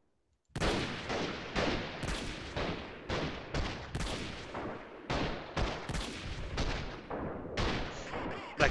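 Rifle shots crack in quick, repeated succession.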